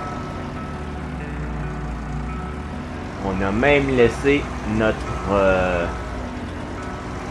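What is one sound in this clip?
A tractor engine hums steadily at low idle.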